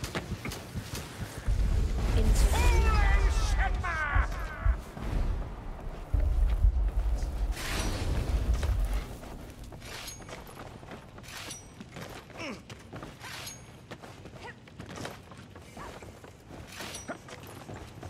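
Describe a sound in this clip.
Blades swish through the air.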